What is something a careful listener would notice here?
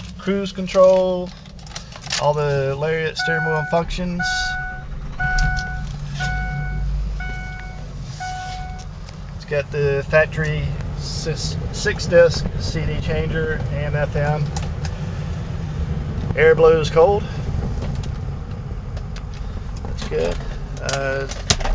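A vehicle engine hums steadily from inside the cab.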